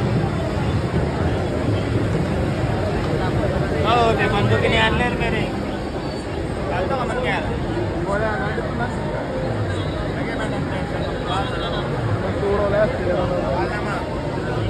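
A crowd of men chatters loudly outdoors.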